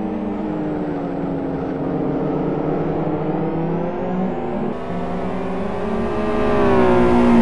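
Racing car engines roar and whine as they shift through the gears.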